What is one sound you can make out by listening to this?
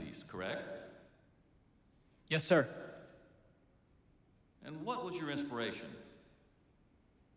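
A young man speaks hesitantly into a microphone, in short phrases.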